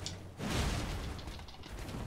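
A sword swings and clashes in a fight.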